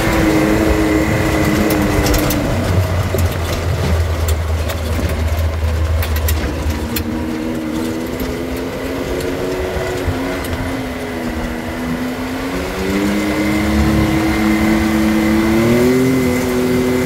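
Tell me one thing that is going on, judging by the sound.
Tyres crunch and rumble over a dirt track.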